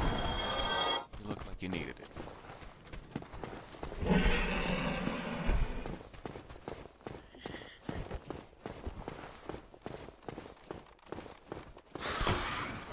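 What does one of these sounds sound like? Metal armor clanks with footsteps on stone.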